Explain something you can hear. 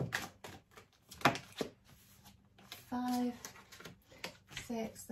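Cards shuffle and flick in a woman's hands.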